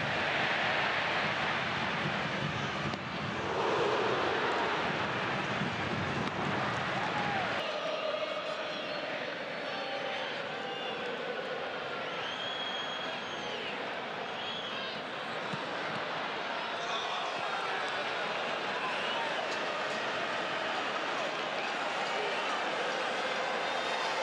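A large crowd cheers and chants in a stadium outdoors.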